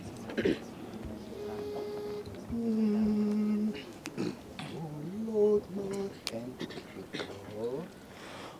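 A choir of young men sings together outdoors, in long held notes.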